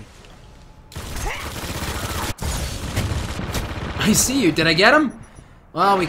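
Heavy twin guns fire in rapid bursts.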